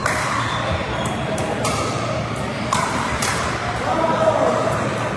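Paddles hit plastic balls with sharp pops in a large echoing hall.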